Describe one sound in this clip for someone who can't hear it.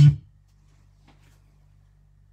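A finger taps a laptop key.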